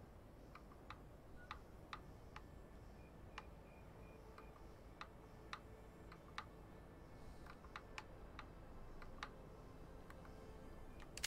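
Short soft clicks tick as menu options change.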